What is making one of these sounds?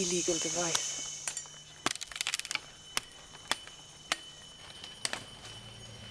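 A man beats a branch against the trees with sharp knocks.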